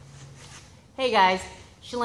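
A young woman speaks close by, cheerfully and with animation.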